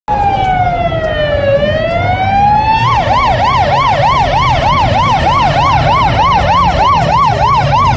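A siren wails nearby, changing from a slow wail to a fast yelp.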